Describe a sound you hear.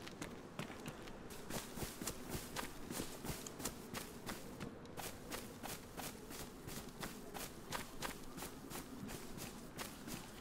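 Footsteps swish steadily through tall grass.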